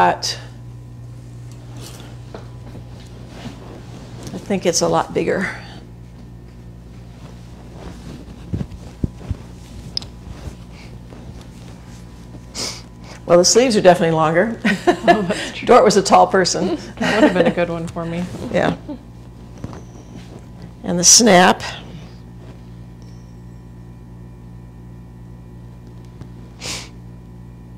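Fabric rustles as a woman handles a garment.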